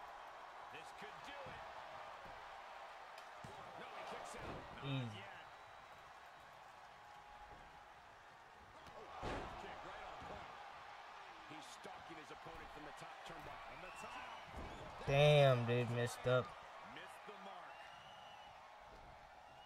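A crowd cheers steadily.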